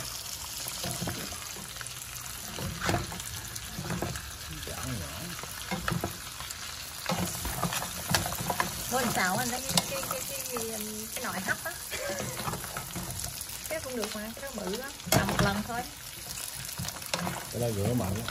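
A wooden spoon scrapes and knocks against a metal pan.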